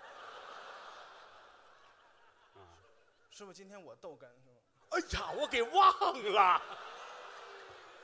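An audience laughs and claps in a large hall.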